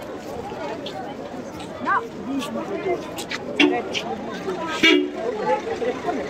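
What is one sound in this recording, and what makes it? A crowd of men and women chatter and call out close by.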